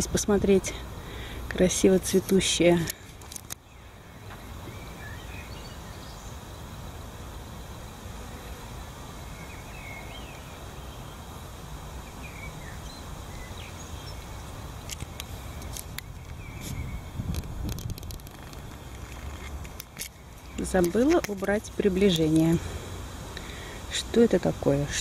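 Wind blows and rustles through tall leaves outdoors.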